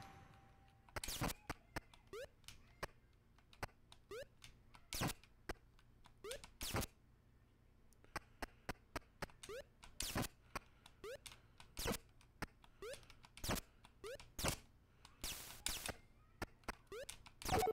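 Short video game sound effects blip and pop rapidly.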